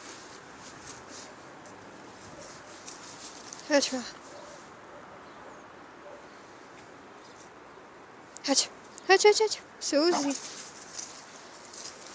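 Dry leaves rustle under paws and footsteps.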